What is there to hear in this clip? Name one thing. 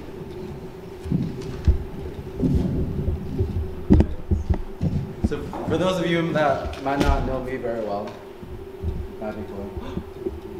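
A young man speaks through a microphone in a hall.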